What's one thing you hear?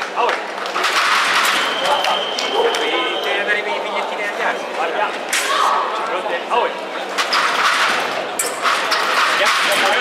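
A crowd cheers and claps in a large echoing hall.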